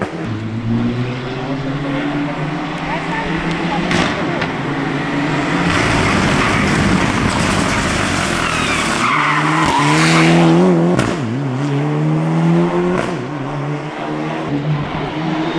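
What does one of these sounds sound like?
A turbocharged rally car accelerates hard uphill through the gears.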